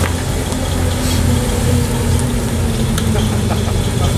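Tyres squeal on tarmac as a car drifts.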